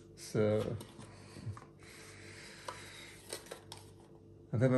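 Small plastic objects click and tap as they are handled close by.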